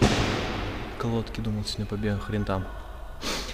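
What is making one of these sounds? A young man speaks close by in short phrases.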